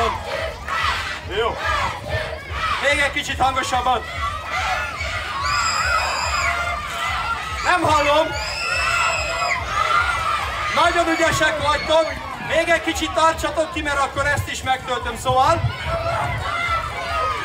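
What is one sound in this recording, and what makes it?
A man sings animatedly through loudspeakers outdoors.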